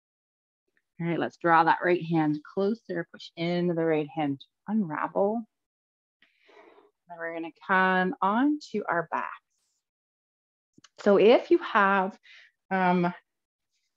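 A woman speaks calmly and clearly into a close microphone.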